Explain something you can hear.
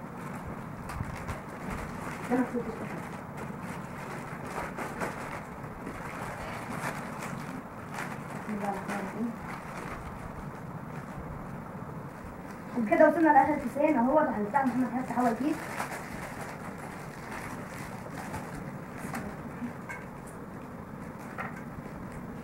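Plastic snack wrappers crinkle and rustle as they are torn open.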